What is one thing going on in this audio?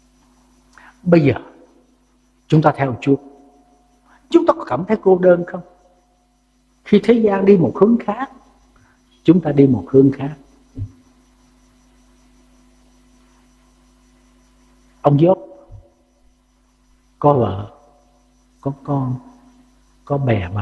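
An elderly man speaks slowly and earnestly into a microphone, pausing between phrases.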